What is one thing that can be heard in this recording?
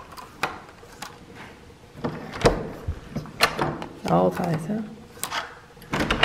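A key card slides into a door lock with a click.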